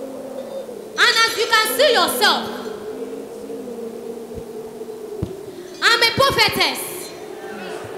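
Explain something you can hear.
A young woman shouts loudly into a microphone over a loudspeaker.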